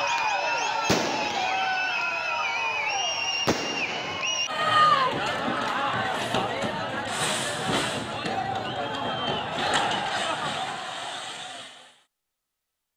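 A crowd shouts and whistles outdoors.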